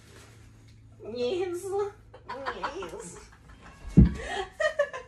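A young woman laughs and squeals close by.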